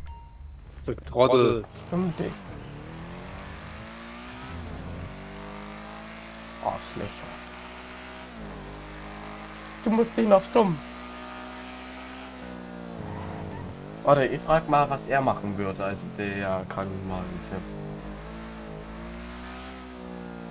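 A car engine revs and roars as the car speeds up and shifts gears.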